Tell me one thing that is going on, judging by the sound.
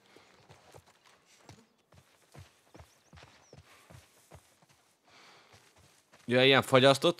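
Footsteps tread steadily on grass and gravel.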